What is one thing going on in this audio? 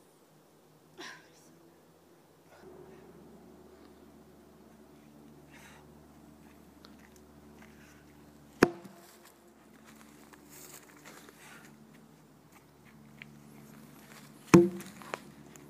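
A heavy log thuds onto the ground.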